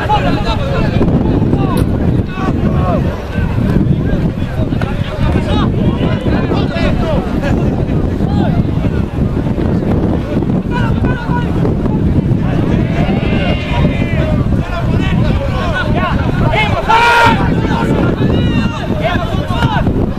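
Rugby players shout to one another across an open field.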